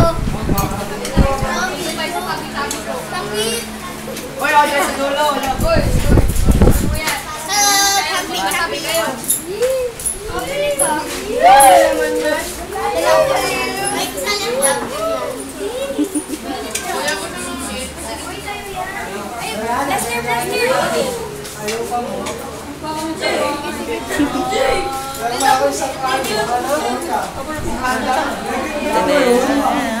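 Girls and young teenagers chatter and laugh nearby.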